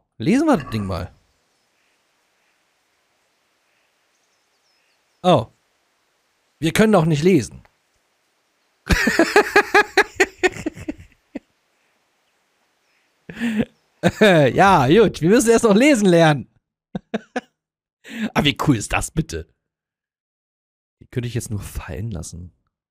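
A man talks with animation into a close microphone, in short bursts with pauses.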